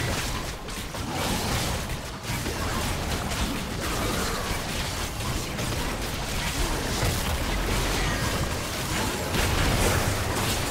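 Game spell effects whoosh and crackle in rapid bursts.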